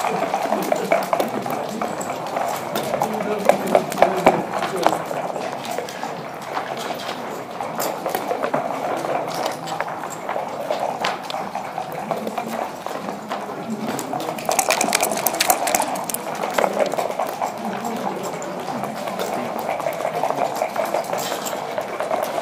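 Plastic game pieces click as they are moved on a board.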